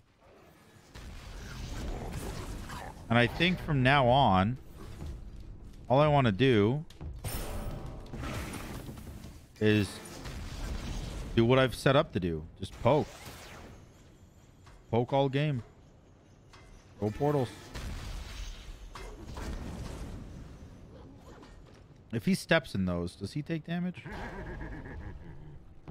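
Game sound effects of spells and attacks whoosh and crackle.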